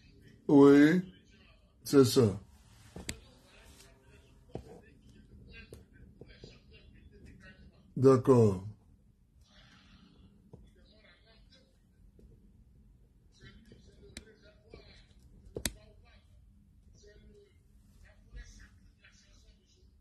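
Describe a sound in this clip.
A man talks on a phone close by, in short loud bursts with long quiet pauses between them.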